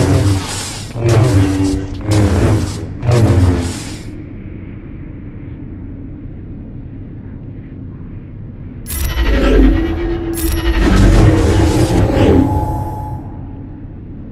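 Lightsabers hum and clash in a fight.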